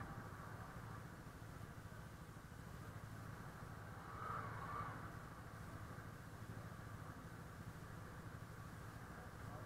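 A motorcycle engine idles and rumbles close by, then pulls away.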